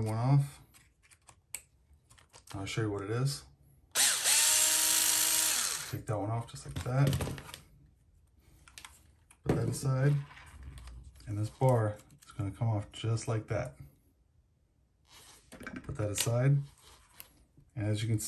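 Plastic parts of a toy car click and rattle as they are handled.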